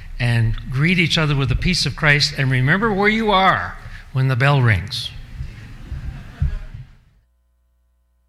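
An elderly man speaks through a microphone in an echoing room.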